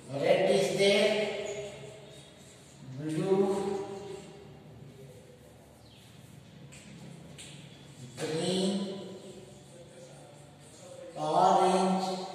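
A man speaks slowly and clearly, in short phrases with pauses.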